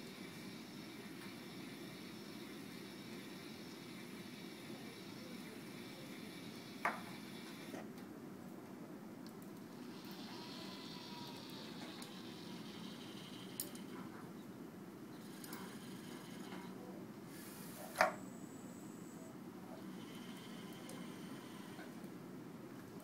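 A conveyor belt hums steadily.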